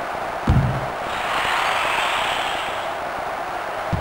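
A crowd cheers briefly after a shot.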